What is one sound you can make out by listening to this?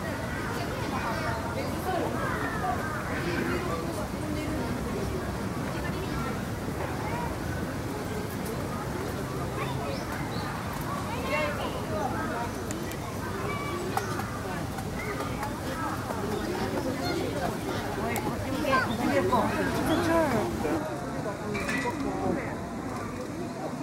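Small birds chirp and twitter busily nearby.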